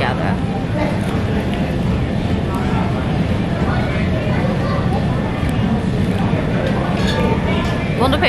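A young woman chews food.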